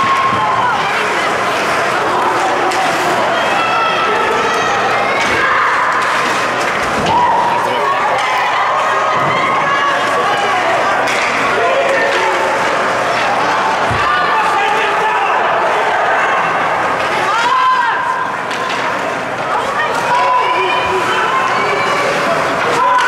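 A crowd of spectators shouts and cheers in a large echoing rink.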